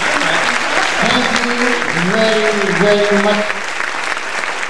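A man sings into a microphone, amplified through loudspeakers in a large hall.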